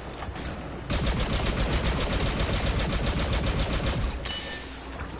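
A heavy repeating blaster fires rapidly in a video game.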